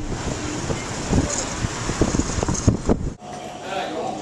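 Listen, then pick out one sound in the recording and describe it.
A car rumbles along the road with wind noise.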